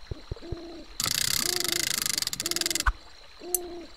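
A rapid electronic ticking plays as game text scrolls.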